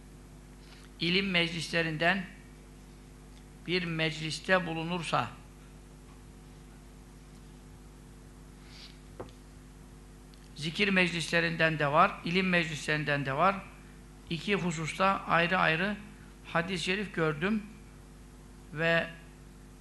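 A middle-aged man speaks slowly and calmly into a close microphone, with long pauses.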